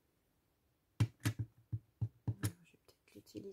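A plastic block clacks against a table.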